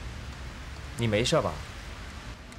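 A man speaks close by in a concerned tone.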